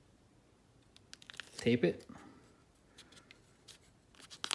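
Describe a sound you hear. Tape rustles and crinkles as hands wrap it around a metal rod.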